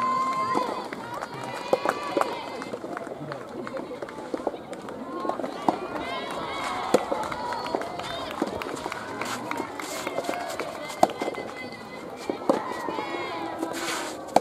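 Rackets strike a tennis ball with sharp pops.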